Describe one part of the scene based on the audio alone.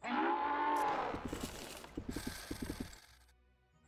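Sword blows land in a fight.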